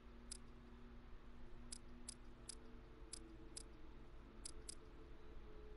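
Short menu clicks tick several times.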